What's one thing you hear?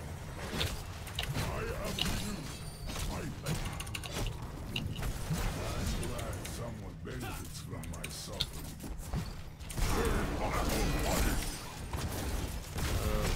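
Game spell effects crackle and zap during a fight.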